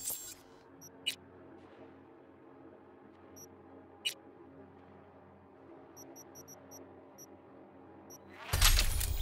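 Soft electronic interface clicks tick now and then.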